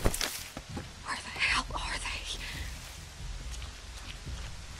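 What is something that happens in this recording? Tall leafy stalks rustle as a person pushes through them.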